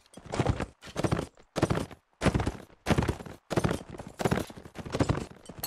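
A horse gallops, its hooves thudding on grass.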